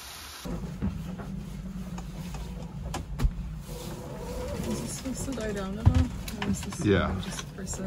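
Dishes clink and clatter.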